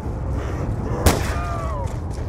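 A single gunshot cracks loudly.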